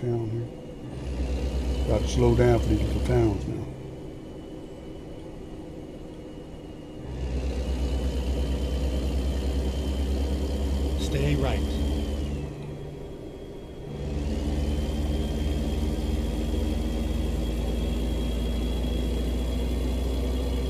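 A truck engine rumbles and roars as it accelerates.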